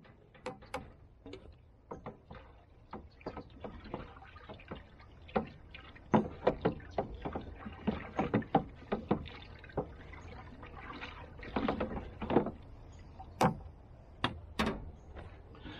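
A wooden pole thumps and knocks inside a plastic barrel of water.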